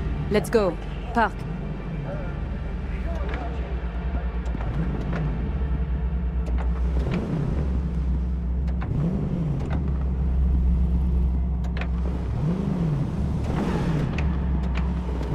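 A car engine rumbles low and steadily, rising and falling in pitch as it revs.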